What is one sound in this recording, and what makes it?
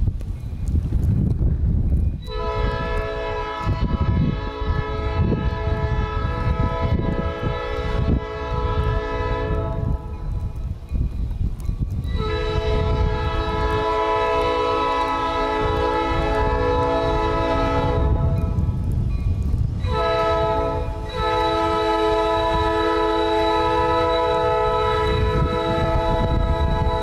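Wind blows outdoors with a low rumble.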